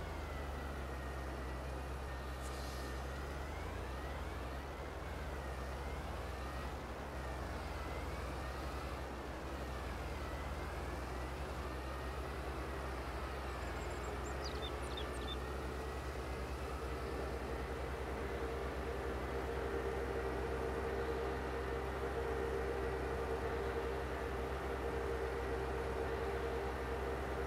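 A tractor engine drones steadily, rising in pitch as it speeds up.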